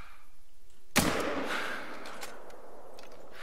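A rifle shot cracks loudly and echoes away outdoors.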